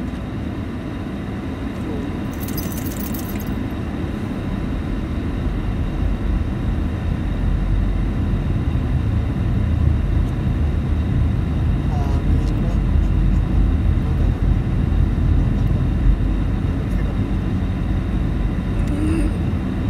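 Tyres roll over the road with a low rumble.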